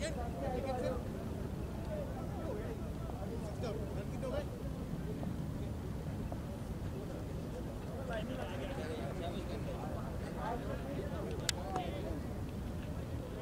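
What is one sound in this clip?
Men talk and call out in the distance outdoors.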